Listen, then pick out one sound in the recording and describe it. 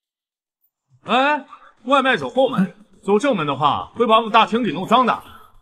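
A young man speaks firmly, close by.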